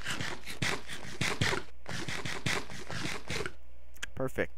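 Blocks are placed with quick soft thuds.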